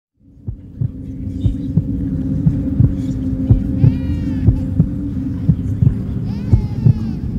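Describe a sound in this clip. A hip-hop song plays with a steady beat and a synth melody.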